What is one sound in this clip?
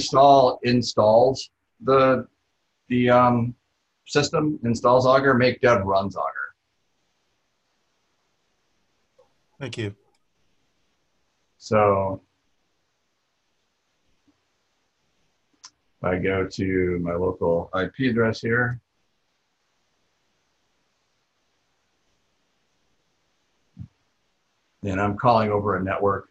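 A man speaks calmly over an online call, in bursts with pauses.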